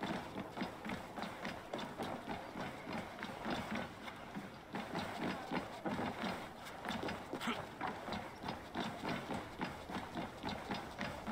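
Footsteps run quickly over wooden boards.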